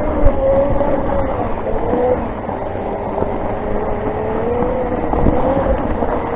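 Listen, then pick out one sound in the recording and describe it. Wheels crunch over a gravel track.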